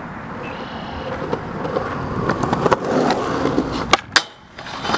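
Skateboard wheels roll on concrete, growing louder as they approach.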